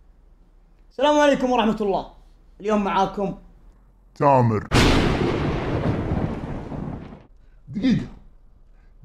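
A young man speaks close up with animation.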